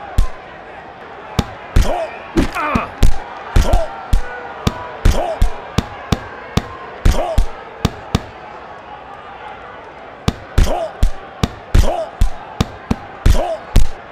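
Punches land with sharp thuds in quick bursts.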